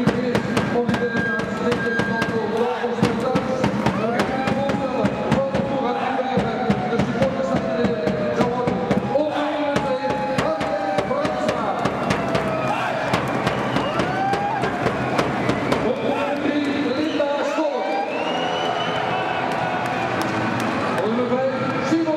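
A large crowd of men and women chants and cheers loudly in a big echoing hall.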